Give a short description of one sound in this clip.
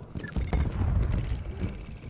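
Fingers tap quickly on a keyboard.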